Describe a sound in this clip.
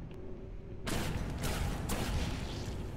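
A gun fires several rapid shots.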